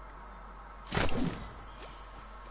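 A game character lands with a heavy thud.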